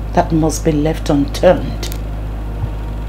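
A young woman speaks nearby in an upset voice.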